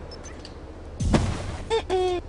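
A burst of snow thumps loudly.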